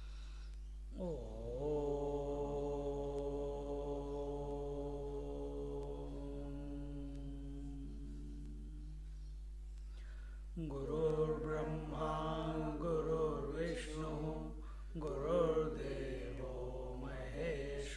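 An elderly man chants slowly and holds long notes close to a microphone.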